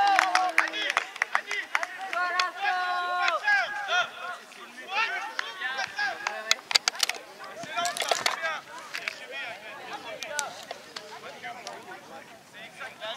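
Young boys shout and call out across an open field.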